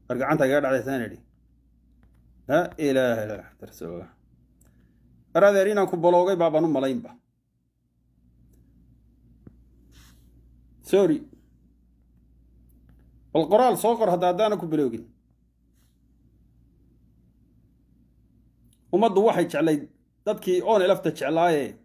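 A man speaks calmly and close to a phone microphone, in short bursts with pauses.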